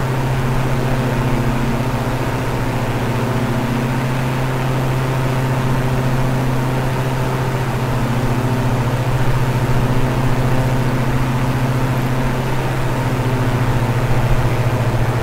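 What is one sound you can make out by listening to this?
Propeller engines drone steadily and loudly.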